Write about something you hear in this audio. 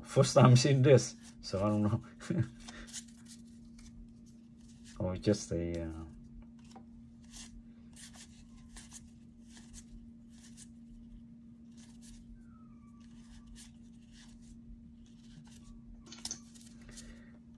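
Trading cards slide and flick against one another close by.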